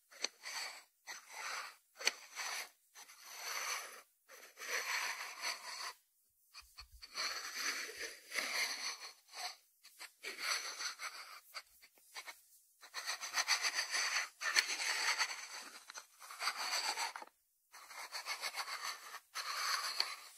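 A ceramic salt dish slides and turns on a wooden board.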